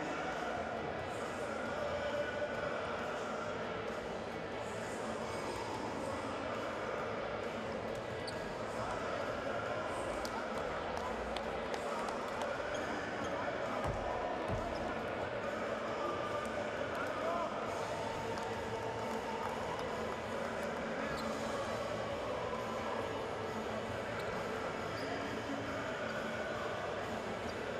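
A crowd murmurs and chatters throughout a large echoing arena.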